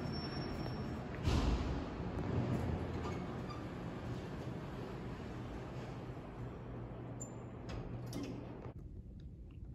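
An elevator hums steadily and then goes quiet.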